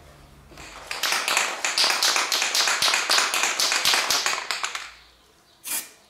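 A spray can hisses steadily in bursts.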